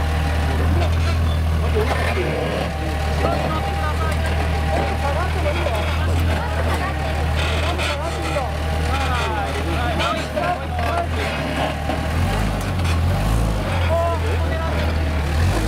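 Tyres grind and scrape over rocks.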